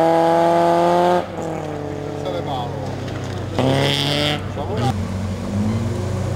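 Gravel crunches and sprays under a car's tyres.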